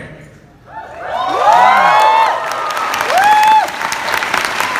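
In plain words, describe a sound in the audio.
An audience cheers and whoops loudly.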